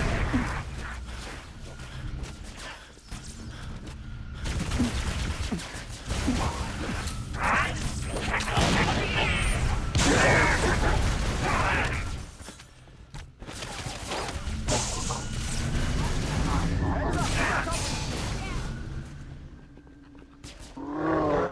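Gunfire rattles and booms in a game.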